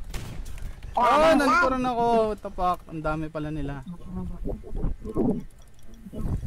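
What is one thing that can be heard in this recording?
A young man exclaims excitedly close to a microphone.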